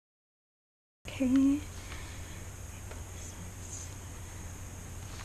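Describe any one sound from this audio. A felt pen squeaks softly across paper.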